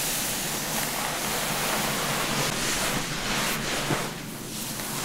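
A towel rubs briskly against wet hair, close by.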